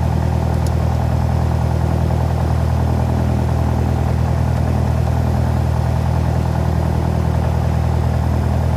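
A small airplane's propeller engine drones loudly and steadily from inside the cabin.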